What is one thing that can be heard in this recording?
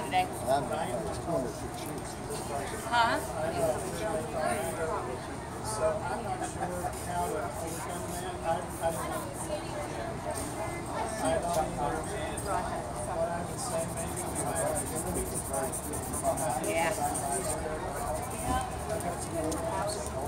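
A fingertip rubs softly across paper.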